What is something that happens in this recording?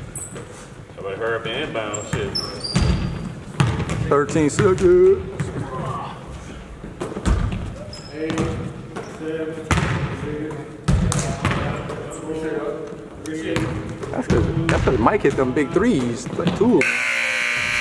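Men call out to each other across the echoing gym.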